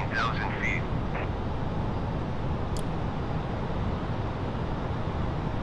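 A jet engine drones steadily in a low, even rumble.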